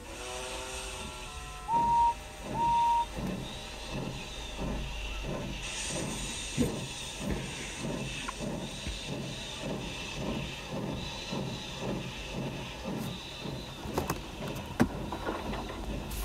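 A toy train rolls along a wooden track with a steady chugging rhythm.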